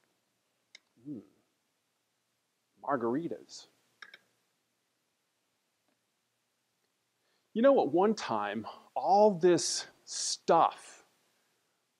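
A middle-aged man speaks clearly into a clip-on microphone, with pauses.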